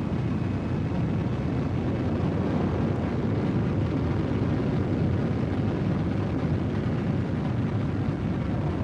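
A spaceship engine roars steadily as the ship flies.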